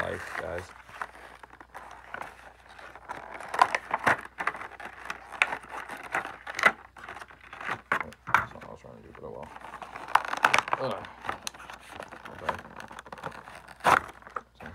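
Fabric rustles and scrapes right up close.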